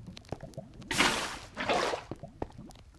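Water splashes and hisses as it is poured out.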